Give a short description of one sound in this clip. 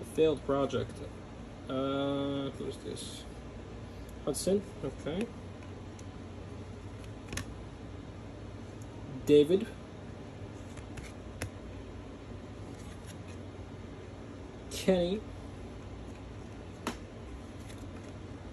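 Trading cards slide and rustle softly between fingers.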